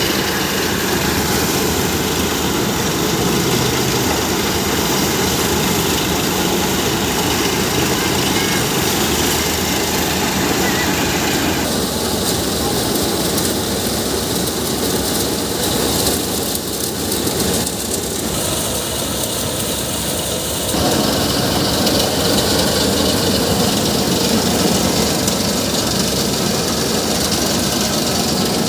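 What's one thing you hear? A threshing machine roars and rattles steadily.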